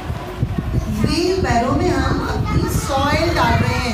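Children talk in high voices.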